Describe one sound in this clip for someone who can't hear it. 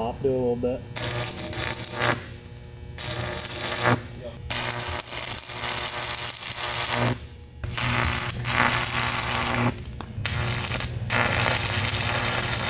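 An arc welder crackles and sizzles in bursts.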